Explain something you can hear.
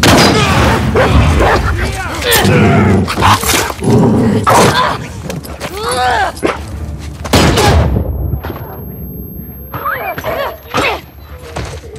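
A young woman strains and grunts during a struggle.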